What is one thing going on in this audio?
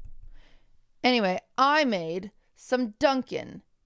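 A young woman speaks expressively into a close microphone.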